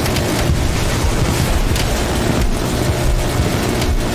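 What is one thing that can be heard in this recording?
Explosions boom on the ground below.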